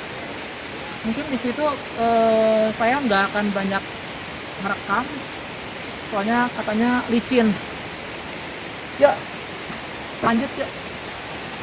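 A young man speaks calmly nearby, outdoors.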